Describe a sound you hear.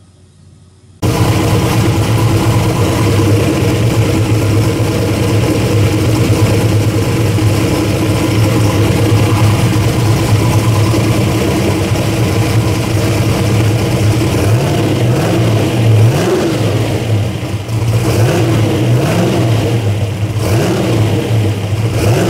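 An engine runs loudly and steadily, droning with a deep hum.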